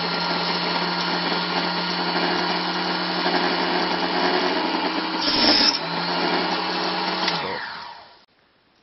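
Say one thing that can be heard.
A small table saw whirs steadily, then winds down.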